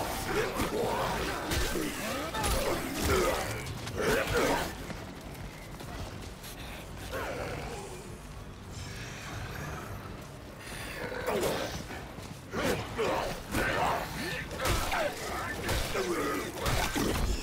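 A blade slashes and thuds into flesh in quick, heavy blows.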